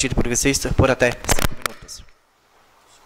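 A man reads aloud into a microphone.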